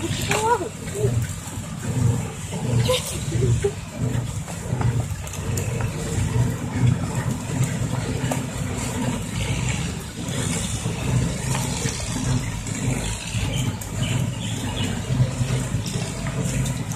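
A loaded dump truck's diesel engine rumbles steadily as it drives slowly ahead.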